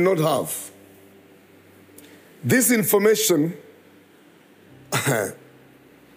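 A middle-aged man speaks with animation through a microphone, in short bursts with pauses.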